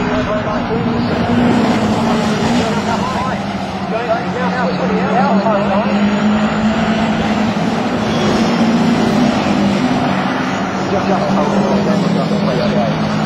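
Racing car engines roar and whine loudly as the cars speed by.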